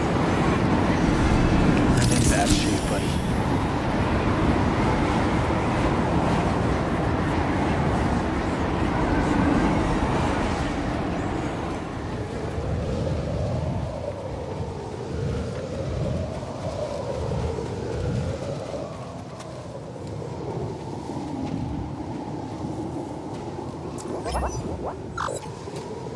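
Wind blows strongly outdoors.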